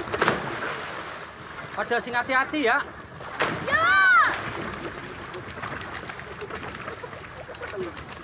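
Water splashes around a swimming child.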